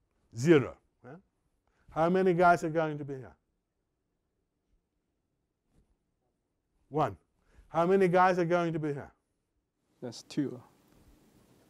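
A middle-aged man speaks with animation through a microphone, in bursts with long pauses.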